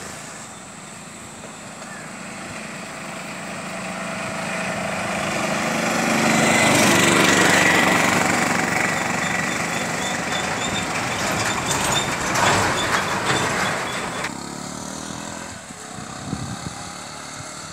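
A motorbike engine hums past.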